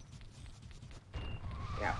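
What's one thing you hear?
A small creature rolls across snow with a low rumble.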